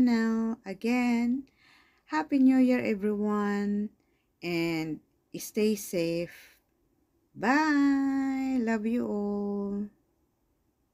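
A woman sings loudly into a microphone, holding long notes.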